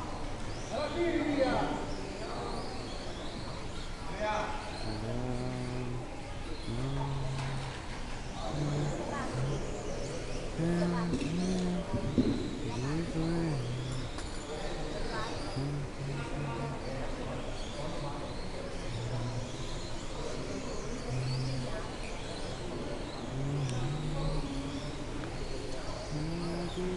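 Small electric model cars whine and rev as they race around a track.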